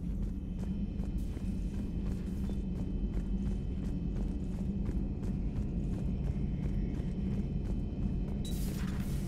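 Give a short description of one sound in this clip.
Footsteps clank steadily on a metal floor.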